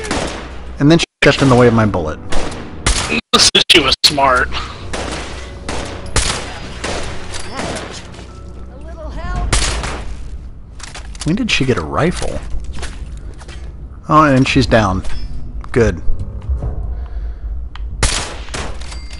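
A rifle fires loud sharp shots.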